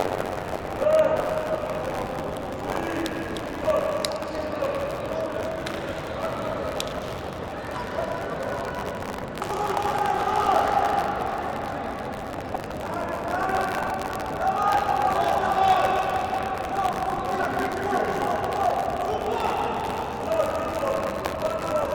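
Young men talk quietly among themselves in a large echoing hall.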